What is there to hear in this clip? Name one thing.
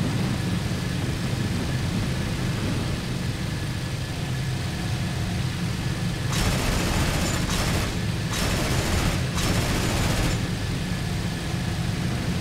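A propeller engine drones steadily and loudly.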